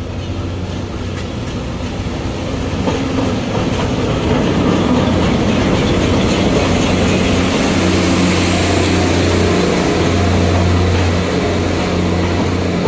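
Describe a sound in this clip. A passenger train rolls past with wheels clattering on the rails.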